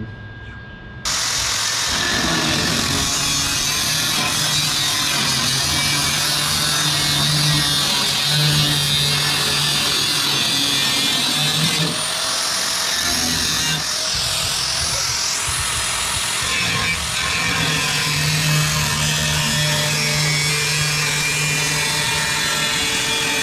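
An angle grinder whines loudly, grinding metal.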